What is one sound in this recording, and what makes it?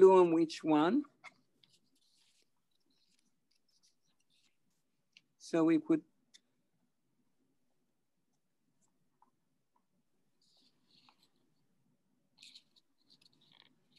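Paper and cardboard rustle faintly as hands move pieces.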